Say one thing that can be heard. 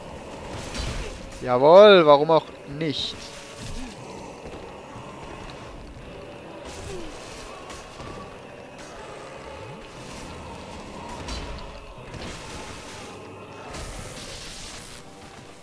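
Heavy blades swing and strike with dull thuds.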